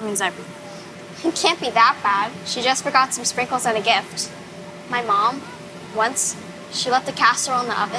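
Another young girl speaks with animation nearby.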